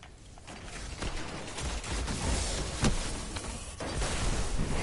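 A crackling electric blast roars loudly.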